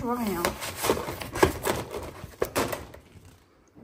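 A plastic sheet crinkles and rustles as it is handled.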